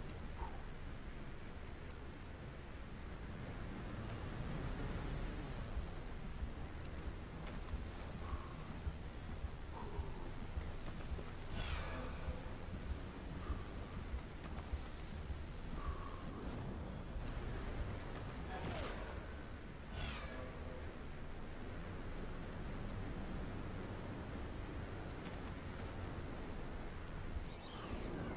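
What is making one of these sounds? Wind rushes loudly past a wingsuit flier in steady gusts.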